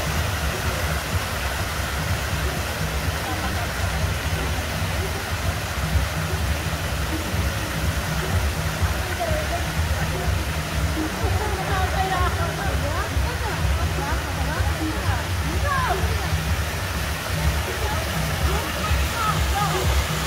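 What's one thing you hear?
A fountain's water splashes and rushes steadily.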